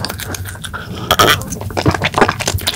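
A young man gulps a drink loudly.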